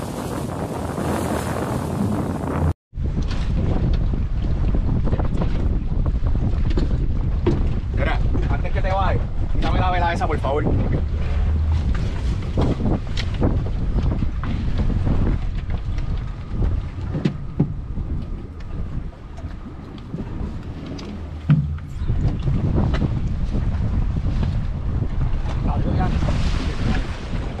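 A boat engine rumbles low and steadily.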